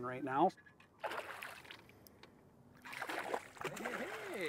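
A fish splashes and thrashes at the surface of the water.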